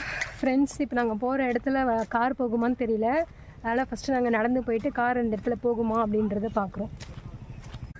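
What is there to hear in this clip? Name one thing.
A young woman speaks close by, calmly and steadily.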